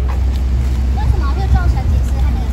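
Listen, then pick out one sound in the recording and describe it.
A woman shouts nearby with agitation.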